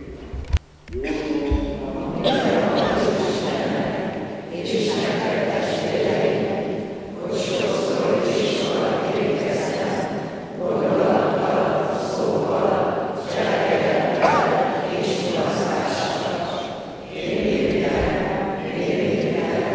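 A congregation prays aloud together in a large echoing hall.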